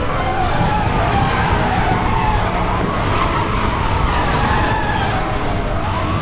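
Tyres screech as a car drifts around a bend.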